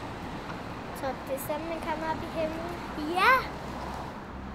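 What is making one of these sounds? A young girl calls out in a high voice.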